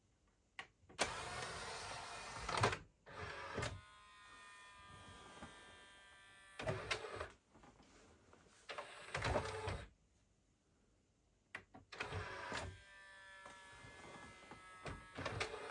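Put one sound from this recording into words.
A disc player's motor whirs and hums as the disc spins up.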